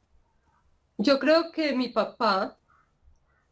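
A woman speaks briefly through an online call.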